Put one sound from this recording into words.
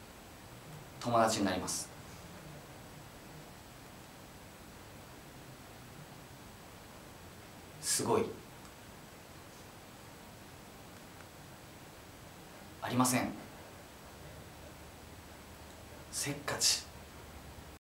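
A young man speaks briefly and calmly into a close microphone.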